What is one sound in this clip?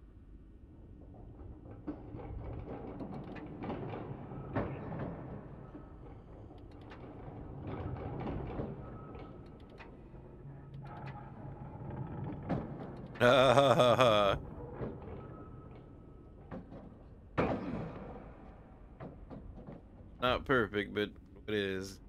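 A wooden beam creaks as it swings back and forth.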